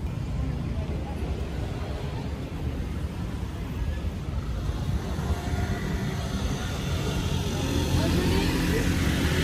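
A large six-wheeled off-road truck rolls by slowly.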